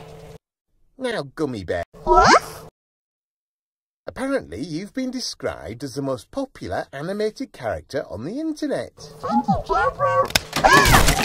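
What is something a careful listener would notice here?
A man speaks with animation in a cartoonish voice.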